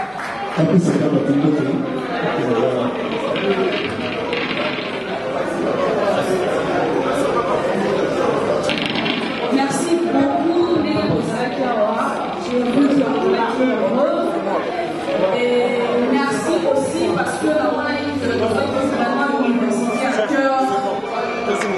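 A live band plays upbeat music with electric guitar.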